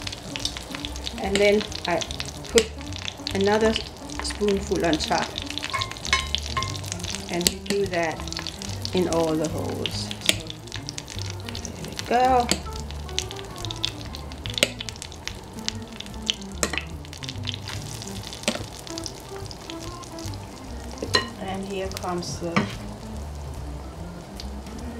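Batter sizzles in hot oil in a pan.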